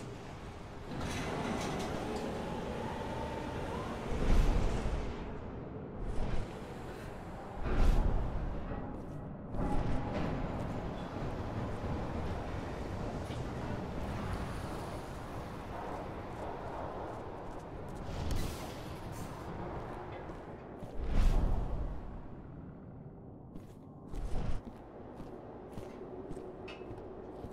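Footsteps walk on a hard floor.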